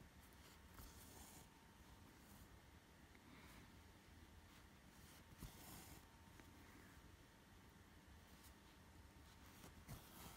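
Thread rustles softly as it is pulled through cloth.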